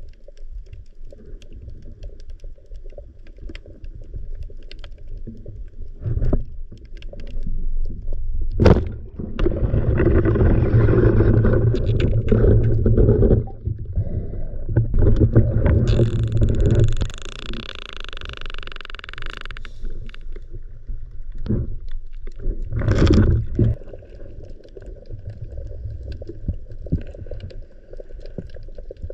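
Water rushes and gurgles underwater around a diver.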